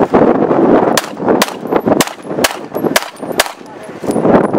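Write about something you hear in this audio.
A handgun fires a quick series of sharp shots outdoors.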